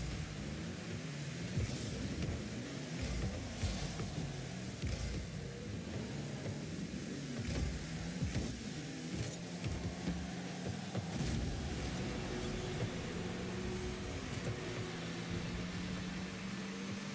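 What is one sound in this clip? A game car's engine hums and revs steadily.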